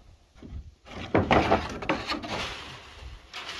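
Wooden boards scrape and rattle as they are moved.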